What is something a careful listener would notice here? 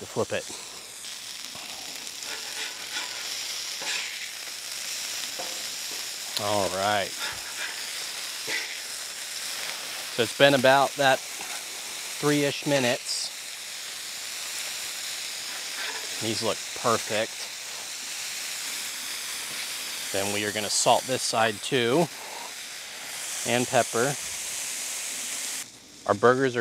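Meat sizzles steadily on a hot griddle.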